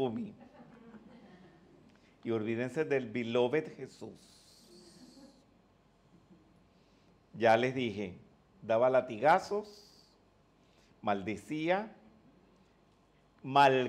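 An elderly man speaks calmly and warmly into a microphone close by, in short phrases with pauses.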